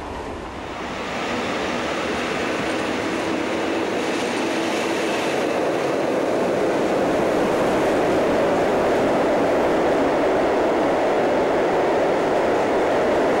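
A freight train rumbles and rattles past on the tracks, growing louder as it nears.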